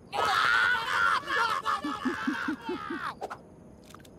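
High, squeaky cartoon voices scream and shriek loudly together.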